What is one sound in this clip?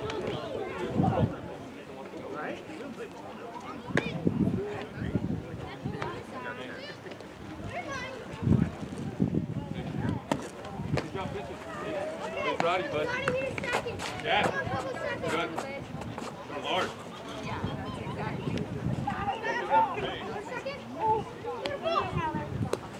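Children and adults talk and call out across an open field outdoors.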